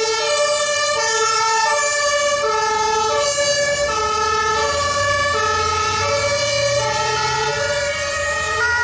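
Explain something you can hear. A diesel fire truck engine rumbles as the truck drives past.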